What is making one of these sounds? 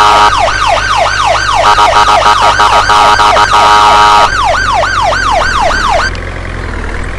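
An ambulance siren wails loudly, rising and falling quickly.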